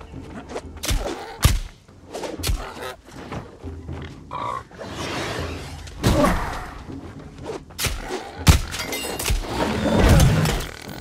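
Spear blows strike an animal with sharp thuds.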